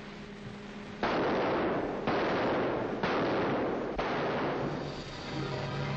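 Explosions boom one after another with roaring blasts.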